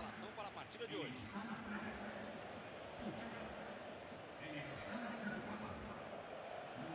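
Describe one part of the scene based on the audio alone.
A large stadium crowd roars and chants.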